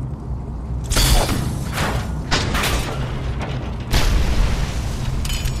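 Loud crashes and blasts boom close by.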